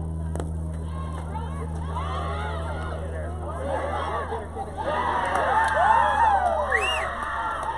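Young women shout and cheer excitedly from a distance.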